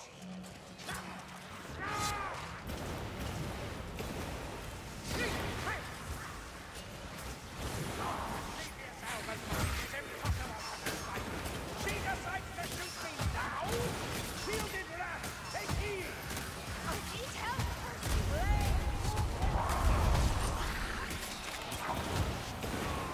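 Swords slash and clang against enemies in quick succession.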